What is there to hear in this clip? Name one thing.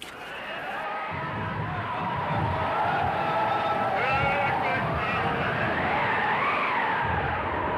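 Heavy waves crash and roar against a ship.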